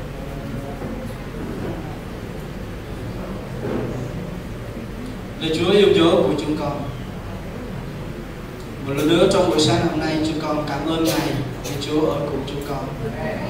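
A crowd of men and women pray aloud together in a large echoing hall.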